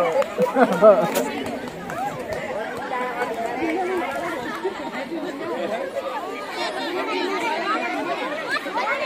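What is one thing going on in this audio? A crowd of children chatters in the distance.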